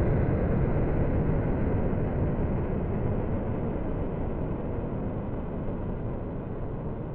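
A jet engine roars with a deep, steady rumble that slowly fades.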